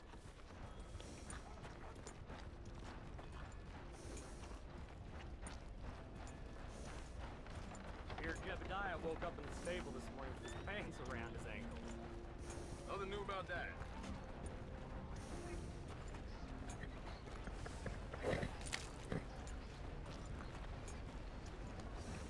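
A horse's hooves clop slowly on a dirt road.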